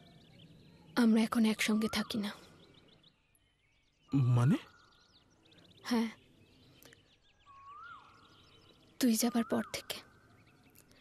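A young woman speaks softly in reply.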